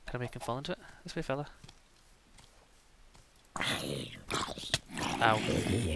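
A monster groans in a low, rasping voice.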